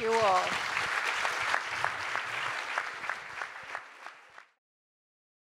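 An audience applauds and the clapping fades away.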